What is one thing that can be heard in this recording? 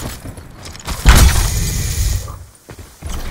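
A smoke grenade pops and hisses loudly.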